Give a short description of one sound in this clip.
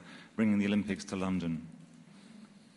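A man speaks into a microphone in a slow, deliberate voice.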